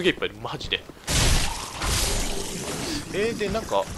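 A sword swings and clashes against bone.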